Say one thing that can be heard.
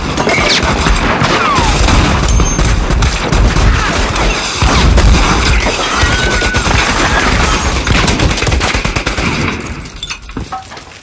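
Pistols fire rapid gunshots in a room.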